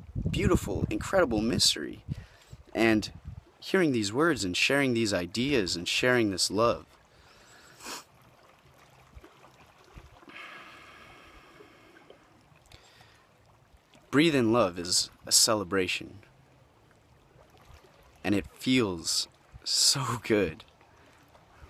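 A young man talks animatedly close to the microphone, with pauses.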